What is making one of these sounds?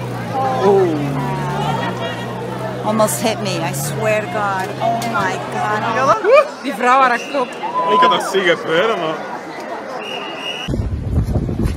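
A crowd of people talks loudly outdoors.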